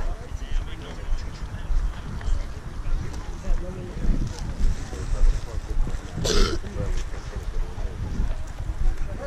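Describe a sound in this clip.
Footsteps brush through grass close by.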